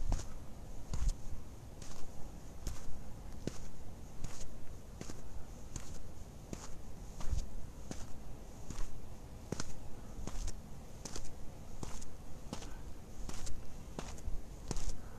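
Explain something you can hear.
Footsteps crunch steadily over dry ground.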